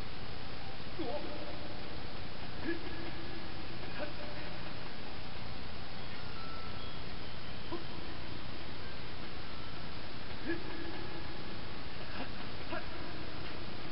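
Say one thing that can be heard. Short chiming game sounds ring out now and then through a television speaker.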